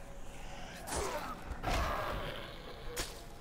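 A blade slashes and thuds into a body.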